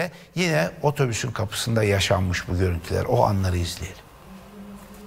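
A middle-aged man speaks with animation into a close microphone.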